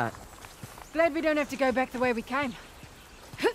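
A second woman answers with animation.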